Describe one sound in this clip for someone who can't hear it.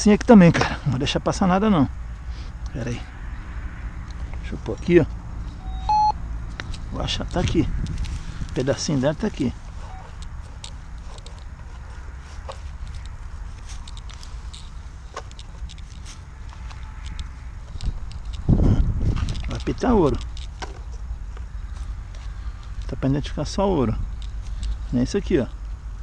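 A small trowel scrapes and digs into dry soil.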